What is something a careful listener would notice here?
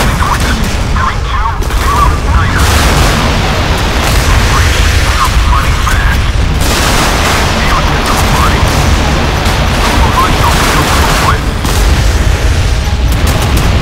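Explosions rumble and crackle nearby.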